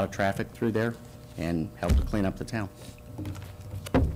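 Paper pages rustle as a man flips through a notebook.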